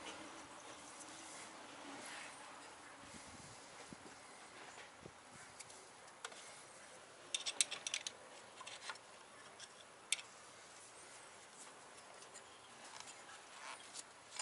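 A ratchet wrench clicks as it turns.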